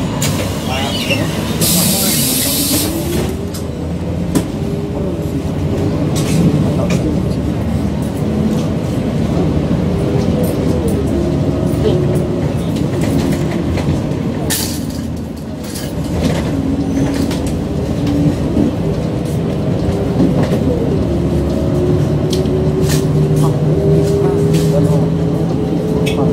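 Vehicle engines hum and rumble steadily in busy traffic.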